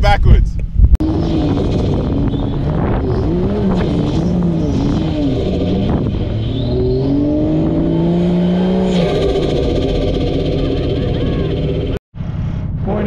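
A four-wheel-drive engine revs and strains as it climbs a sand dune.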